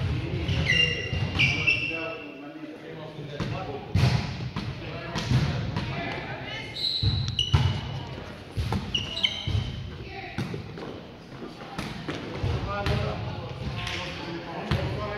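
Men call out to each other in an echoing gym.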